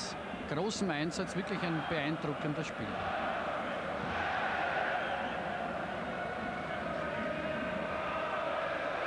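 A stadium crowd murmurs and chants steadily in a large open space.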